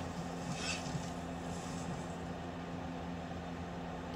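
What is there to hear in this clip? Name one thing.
A bowstring creaks as it is drawn back.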